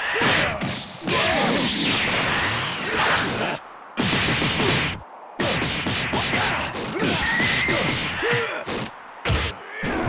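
Punches and kicks land with heavy, rapid thuds.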